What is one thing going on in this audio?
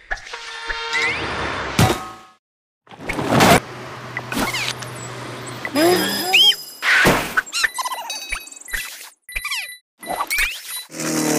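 Game sound effects chime and whoosh in quick bursts.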